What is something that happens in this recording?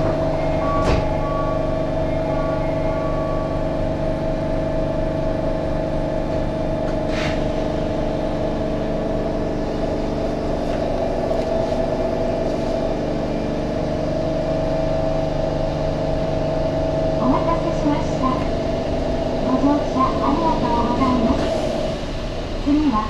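A train's electric equipment hums steadily from inside the cab.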